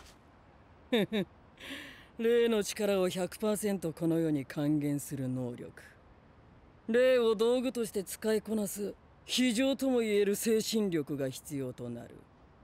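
A young man speaks calmly and menacingly, close by.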